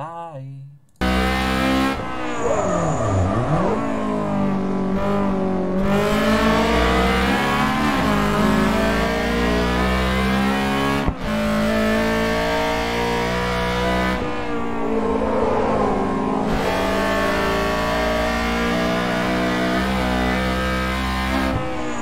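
A car engine roars and revs up and down at high speed.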